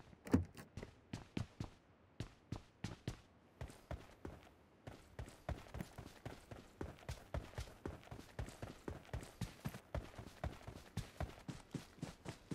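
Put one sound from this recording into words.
Footsteps crunch steadily on grass and dirt.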